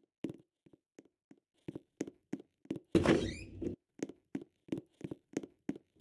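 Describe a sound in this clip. A game character's footsteps thud on a stone floor.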